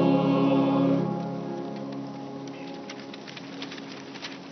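A choir sings a held chord that fades into a long echo.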